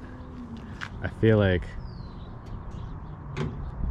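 A car bonnet slams shut.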